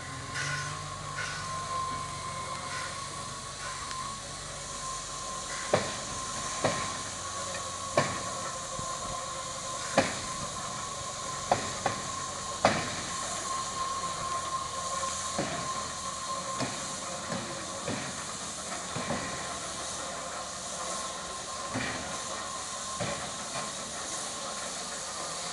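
A turntable turns slowly with a steam locomotive on it.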